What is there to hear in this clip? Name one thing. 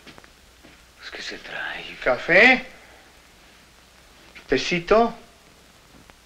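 An elderly man speaks in a low, firm voice.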